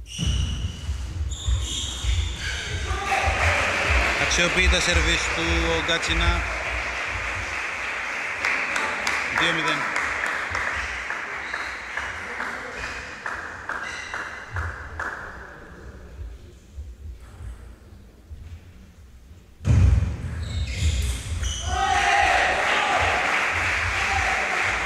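A table tennis ball clicks rapidly back and forth off paddles and the table.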